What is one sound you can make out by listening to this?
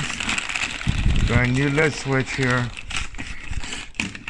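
Paper packaging rustles and crinkles as a hand rummages inside.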